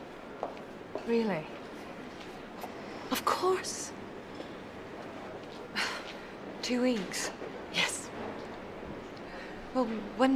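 A woman speaks quietly and tensely, close by.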